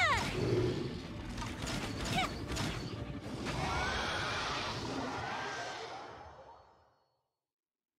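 Loud magical blasts and crashes ring out.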